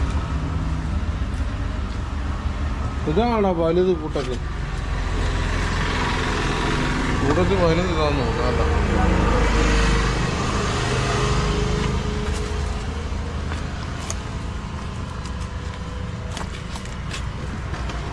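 Wet fish slap and slide against each other as a hand lifts them from a basin.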